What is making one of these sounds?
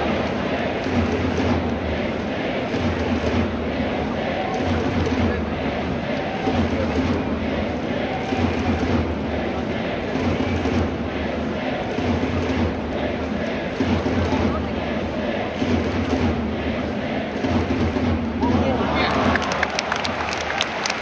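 A large crowd chants and cheers in rhythm, echoing through a huge indoor stadium.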